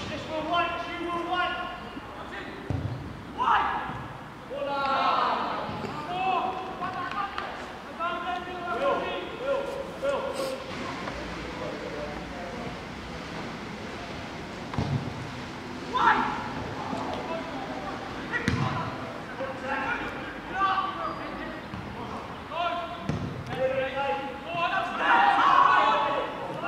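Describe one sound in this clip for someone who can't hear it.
Men shout to each other across an open pitch outdoors.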